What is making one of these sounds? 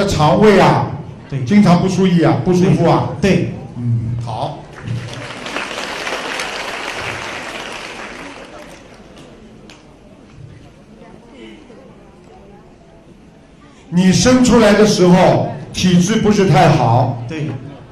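A middle-aged man speaks calmly through a microphone.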